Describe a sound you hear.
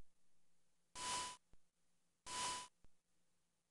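Two short electronic beeps sound, one after the other.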